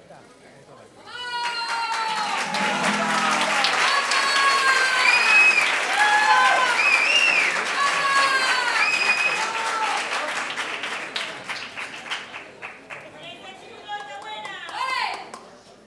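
An audience claps along.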